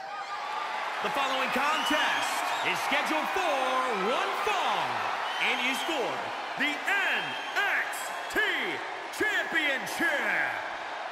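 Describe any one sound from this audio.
A man announces loudly through a microphone, echoing over the arena.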